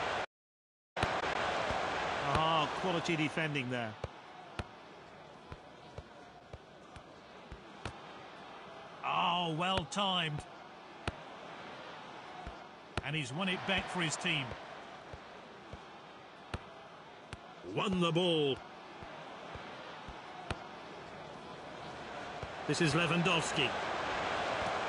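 A football is kicked with short, sharp thumps now and then.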